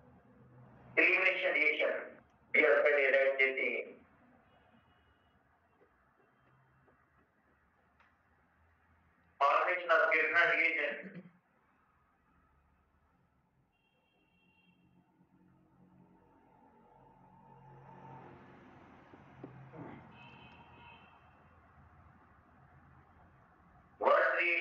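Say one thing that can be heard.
A man speaks calmly into a headset microphone in short bursts.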